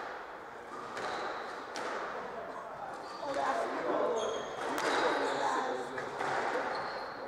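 A squash ball smacks sharply off racquets and walls in an echoing court.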